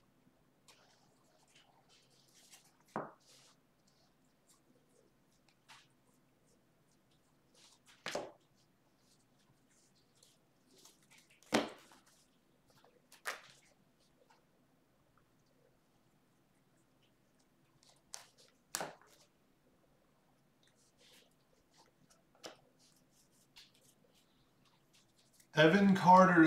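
Trading cards rustle and flick as hands sort through a stack.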